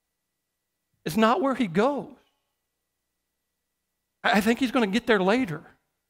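A middle-aged man speaks expressively through a microphone, pausing between phrases.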